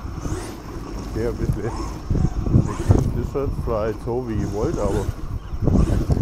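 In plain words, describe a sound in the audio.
A small electric motor whines, rising and falling in pitch.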